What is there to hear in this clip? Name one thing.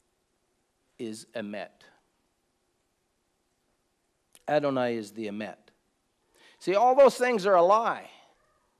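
An older man speaks slowly and earnestly, close to a microphone, with long pauses.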